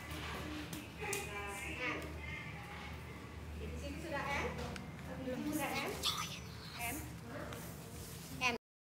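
Young women talk and laugh nearby.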